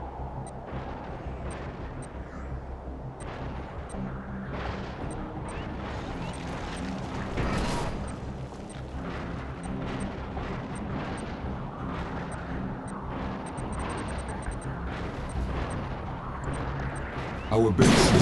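A large robot walker stomps heavily across the ground.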